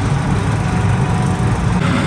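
Electric fans whir steadily with a low hum.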